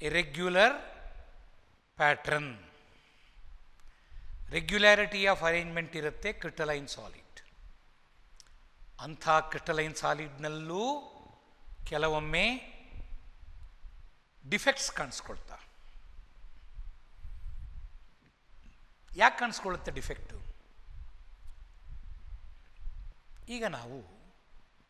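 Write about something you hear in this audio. An older man speaks calmly and clearly into a clip-on microphone, pausing between phrases.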